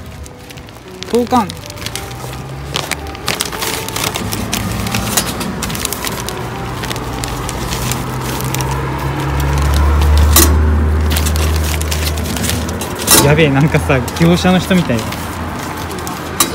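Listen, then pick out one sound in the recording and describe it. Paper envelopes rustle as they are pushed into a metal postbox slot.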